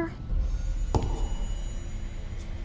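Heavy boots thud on wooden boards.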